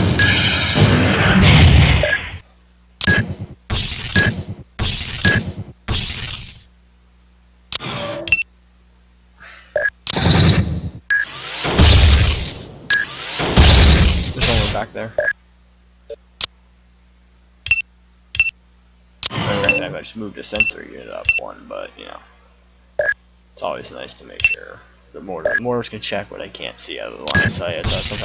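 Short electronic beeps sound from a game's controls.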